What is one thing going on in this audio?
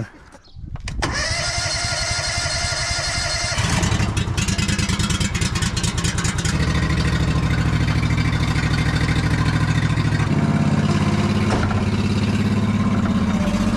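A small gasoline engine starts up and runs steadily, revving louder after a few seconds.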